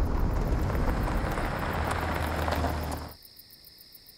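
A car engine rumbles outdoors.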